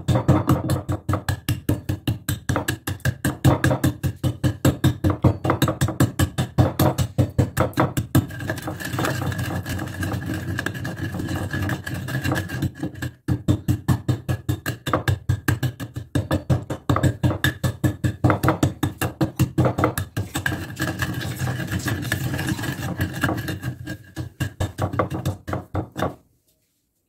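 A wooden pestle pounds rapidly in a stone mortar with sharp knocks.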